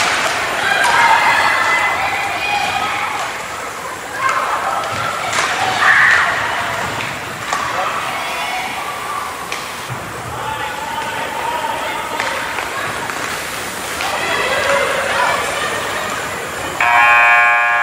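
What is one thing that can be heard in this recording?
A crowd of spectators shouts and cheers in a large echoing arena.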